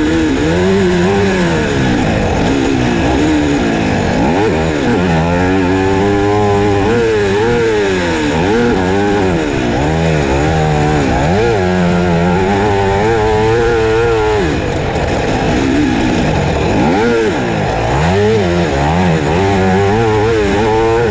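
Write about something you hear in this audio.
A motocross bike engine revs up and down loudly, close by.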